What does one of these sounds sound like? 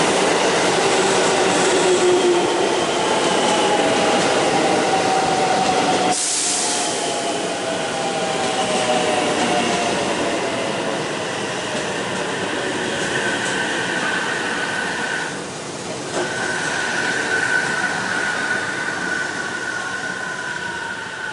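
A train's motors whine and slowly fall in pitch.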